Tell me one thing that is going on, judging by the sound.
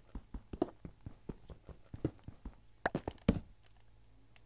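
A pickaxe chips rapidly at stone with sharp clicks.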